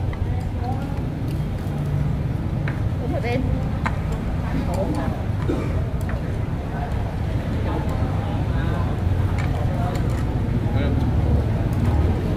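Chopsticks click against bowls.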